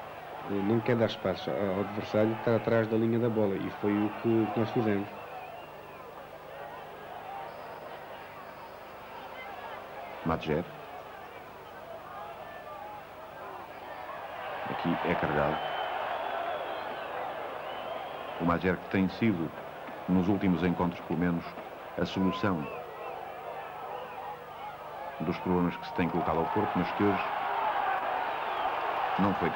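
A large crowd murmurs and roars in a stadium.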